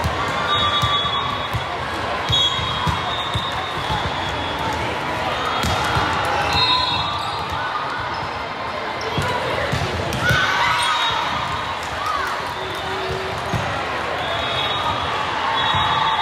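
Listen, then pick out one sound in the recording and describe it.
Players and spectators shout and cheer in a large echoing gym.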